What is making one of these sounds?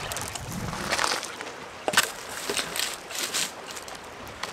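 Wooden sticks knock and clatter together.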